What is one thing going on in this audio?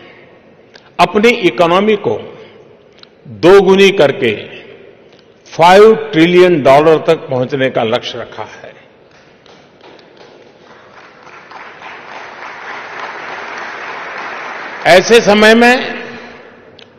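An elderly man speaks slowly and deliberately into a microphone in a large hall, with short pauses.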